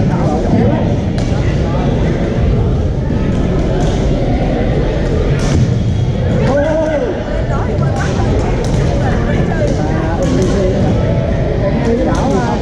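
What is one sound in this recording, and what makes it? Paddles pop against a plastic ball in a large echoing gym.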